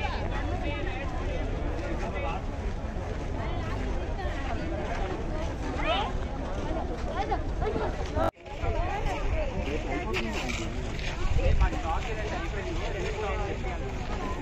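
A crowd of men and women chatters all around, outdoors.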